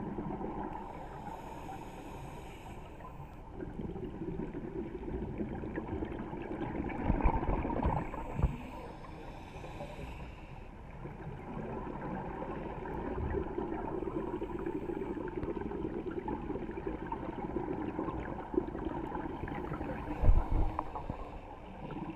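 Bubbles rush and gurgle from a diver's breathing gear in bursts, heard underwater.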